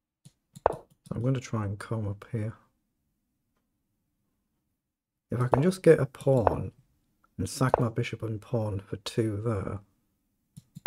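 A man speaks calmly and close up, as if into a microphone.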